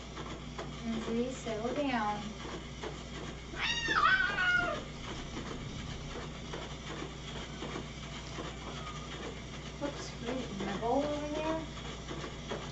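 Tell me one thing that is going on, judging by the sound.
A cat meows nearby.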